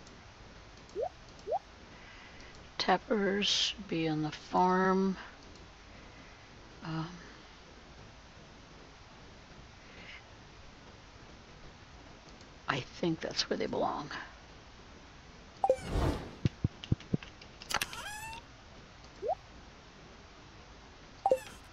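Short game menu blips and clicks sound now and then.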